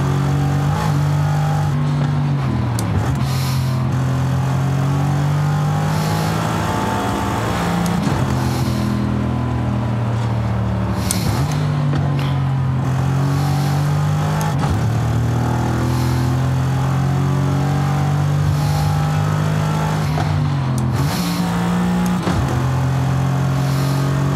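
A car engine roars steadily, its pitch climbing and dropping back with each gear change.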